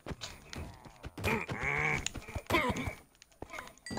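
Sword blows land with sharp thuds.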